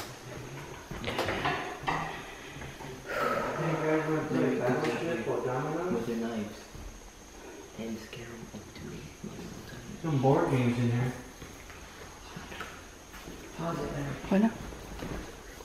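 A man talks from across an echoing room.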